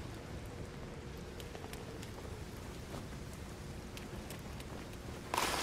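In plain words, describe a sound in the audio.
Footsteps tap quickly on a hard wet floor.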